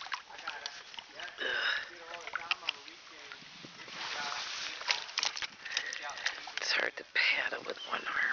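A paddle knocks against the side of a kayak.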